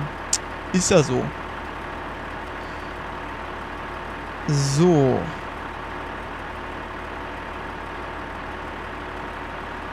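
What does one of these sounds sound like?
A combine harvester engine hums steadily.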